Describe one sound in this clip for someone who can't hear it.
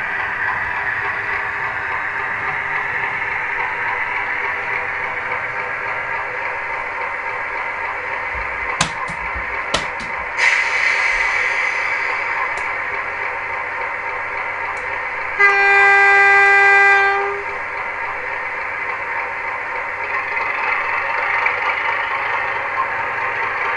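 A model diesel locomotive hums steadily as it runs along the track.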